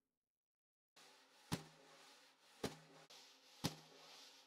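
Wire brushes swish and tap on a snare drum.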